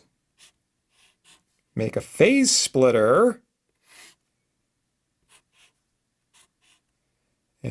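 A marker squeaks on paper in short strokes.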